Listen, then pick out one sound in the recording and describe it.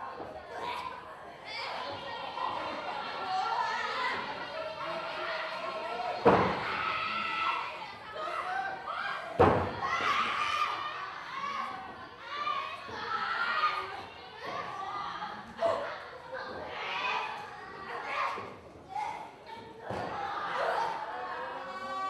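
An indoor crowd calls out and cheers.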